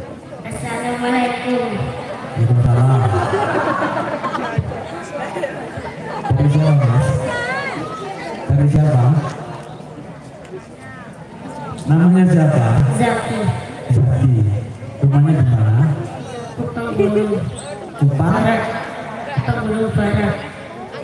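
A band plays music through loudspeakers.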